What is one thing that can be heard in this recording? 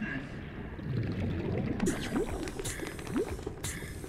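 Bubbles gurgle and fizz underwater.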